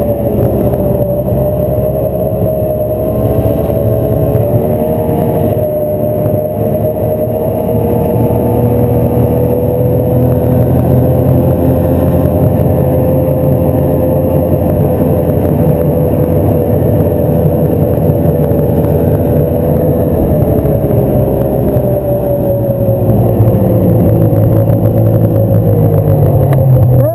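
A snowmobile engine drones loudly and steadily close by, its pitch rising and falling slightly.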